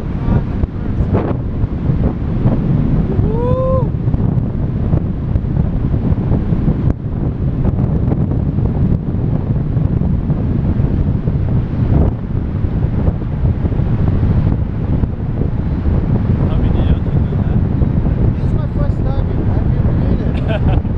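Strong wind buffets and roars loudly outdoors.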